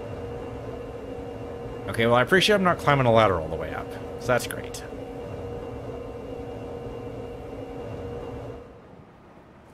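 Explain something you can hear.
An elevator hums steadily, then stops.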